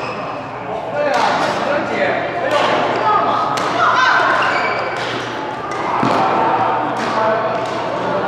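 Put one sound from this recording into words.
Badminton rackets hit a shuttlecock back and forth with sharp pops.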